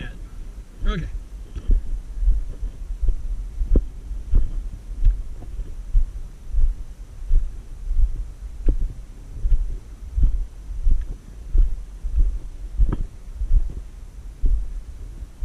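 Footsteps crunch on dry, gritty rock at a steady walking pace.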